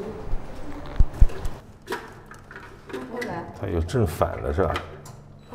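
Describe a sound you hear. A door lock clicks and rattles.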